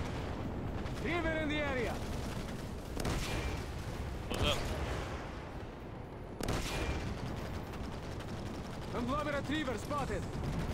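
A man talks into a microphone in short bursts.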